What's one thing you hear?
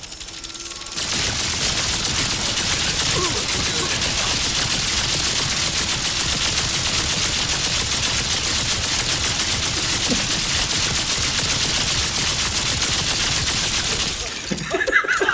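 A weapon fires a steady, roaring hiss.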